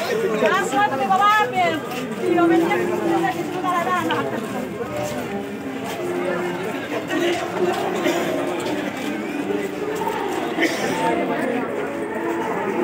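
A crowd of men and women talk and call out close by.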